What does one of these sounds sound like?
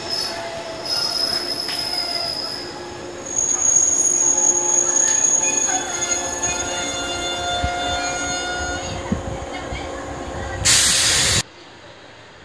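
A train rolls slowly along a platform.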